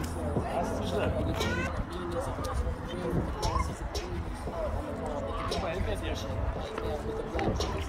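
Men, women and children chatter at a distance in an open square.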